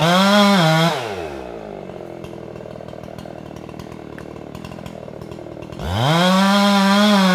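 A chainsaw drops to idle briefly, then revs up again.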